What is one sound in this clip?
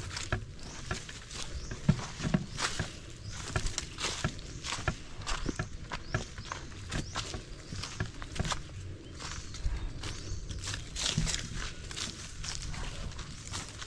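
Footsteps crunch on dry leaves and twigs along a path.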